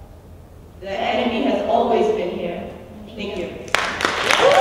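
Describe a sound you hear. Young women sing together into microphones.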